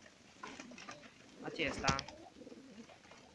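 A pigeon flaps its wings close by.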